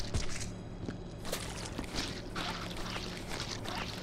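A clawed hand slashes against a brick wall with a wet splat.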